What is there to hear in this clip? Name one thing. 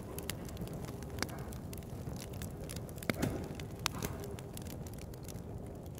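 A fire crackles in a metal barrel.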